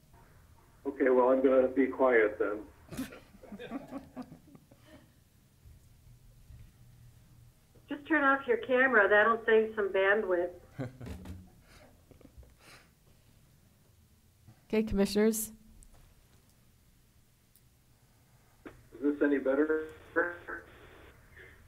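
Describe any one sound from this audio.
A middle-aged man speaks calmly through an online call, in short bursts.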